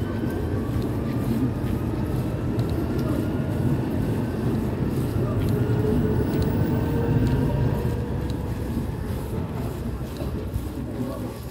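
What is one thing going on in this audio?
A train rumbles and whines as it pulls away along the platform.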